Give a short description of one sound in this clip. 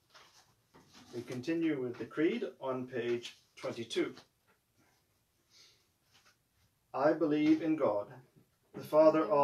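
A man reads aloud calmly close by.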